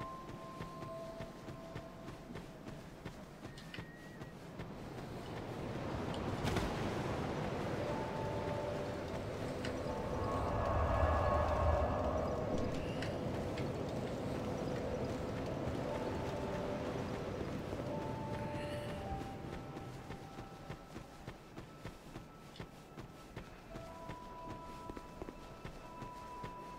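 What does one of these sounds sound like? Footsteps thud at a steady running pace.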